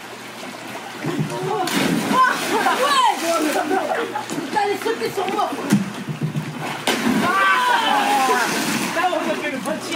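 Young men shout and talk excitedly outdoors.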